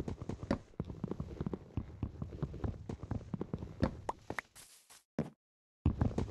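Blocky wood is struck repeatedly with quick dull knocks.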